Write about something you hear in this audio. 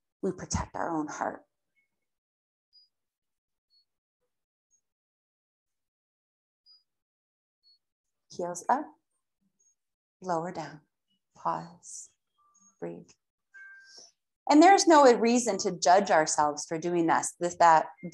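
A woman speaks calmly, giving slow instructions through a microphone.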